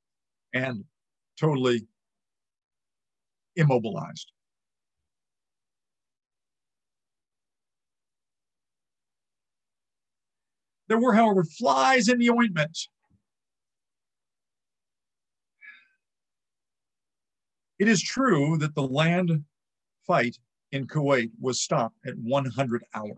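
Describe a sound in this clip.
An elderly man speaks calmly through a microphone on an online call, in short bursts with pauses.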